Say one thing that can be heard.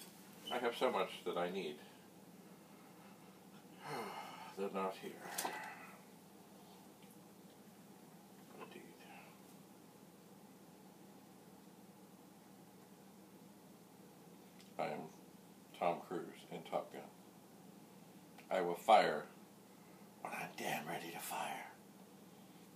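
An elderly man talks calmly close by, in short bursts.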